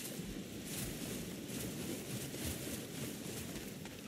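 Water splashes under running feet.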